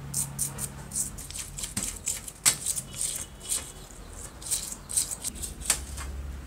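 A toothbrush scrubs a metal part in water with rapid wet scratching.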